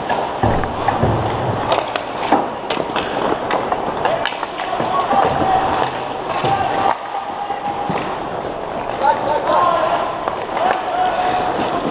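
Hockey sticks clack against the puck and the ice in a large echoing hall.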